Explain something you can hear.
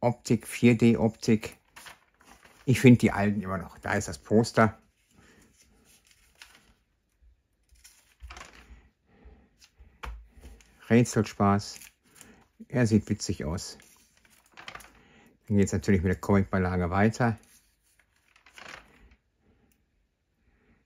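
Glossy magazine pages rustle as they are turned.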